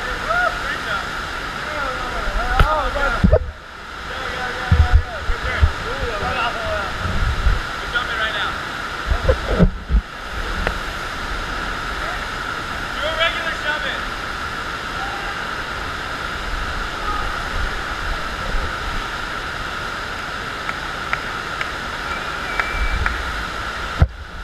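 Water rushes steadily over a wave machine in a large echoing hall.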